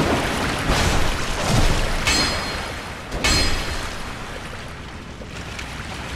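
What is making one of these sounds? A blade strikes and slashes in a fight.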